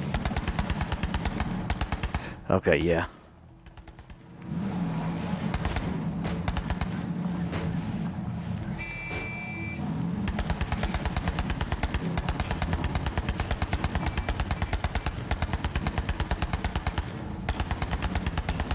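A buggy engine roars and revs.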